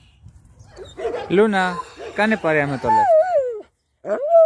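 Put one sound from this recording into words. Dogs whine and yelp while playing.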